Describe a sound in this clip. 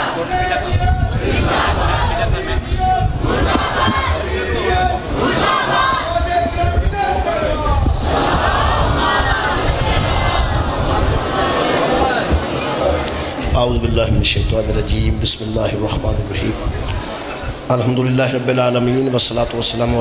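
A middle-aged man recites with emotion through a microphone.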